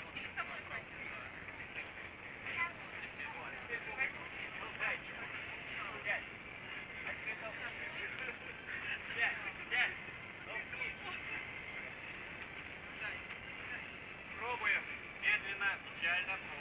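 Adult men and women chat nearby outdoors.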